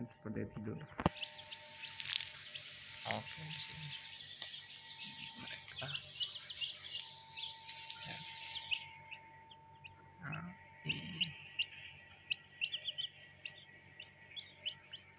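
Chicks cheep rapidly and shrilly close by.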